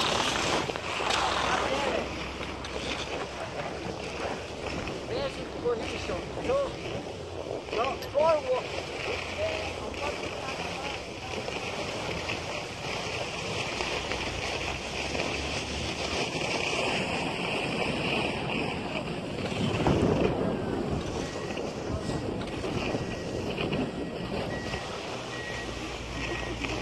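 Skis hiss and scrape steadily over packed snow.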